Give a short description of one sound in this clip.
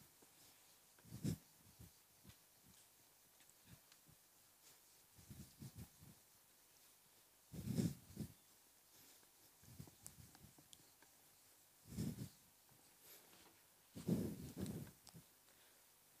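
An eraser rubs across a whiteboard in short soft strokes.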